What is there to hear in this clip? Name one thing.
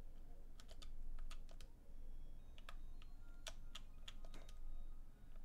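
Short electronic blips click several times.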